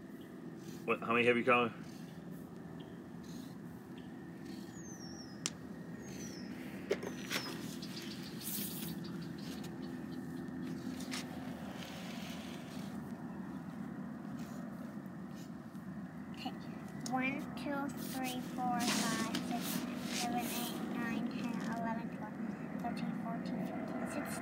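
A marker scratches and squeaks on paper.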